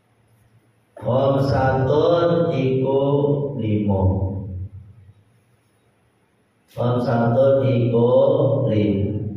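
A man chants melodically into a microphone.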